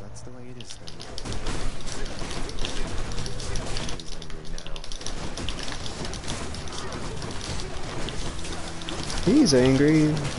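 Magic blasts and hits crackle and thud rapidly.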